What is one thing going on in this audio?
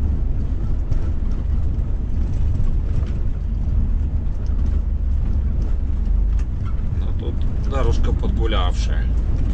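A vehicle's engine rumbles low and steady from inside the cab.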